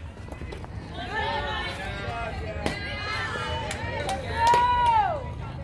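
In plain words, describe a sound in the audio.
Young women shout and cheer from nearby.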